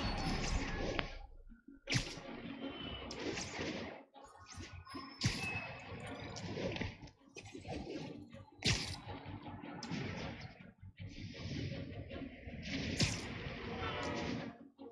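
Web lines snap and thwip repeatedly.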